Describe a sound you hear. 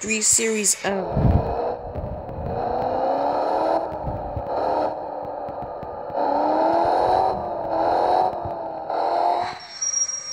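A car engine revs up and hums as the car speeds along.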